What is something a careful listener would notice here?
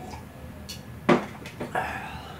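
A cup is set down on a table with a knock.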